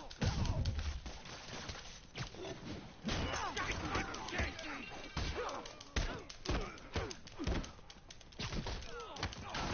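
Punches and kicks land with heavy thuds in a brawl.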